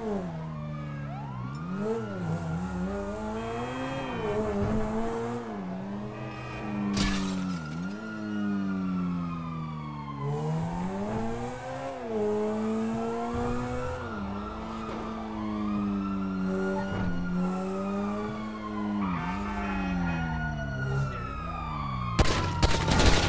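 A sports car engine revs up and shifts through its gears.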